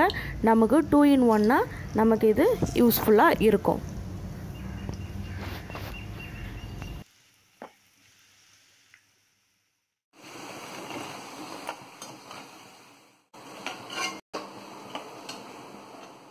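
Hot oil sizzles and bubbles steadily as pieces fry.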